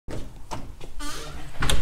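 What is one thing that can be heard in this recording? A door latch clicks as a door swings open.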